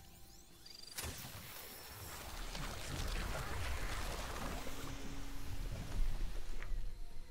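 An explosion booms and roars, then rumbles away.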